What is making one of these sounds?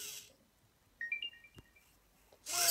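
A small desk robot plays a short electronic startup chime.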